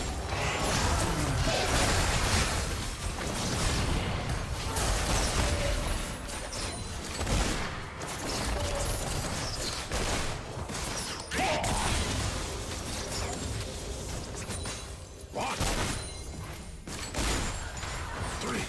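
Fantasy combat sound effects of spells and strikes burst and clash repeatedly.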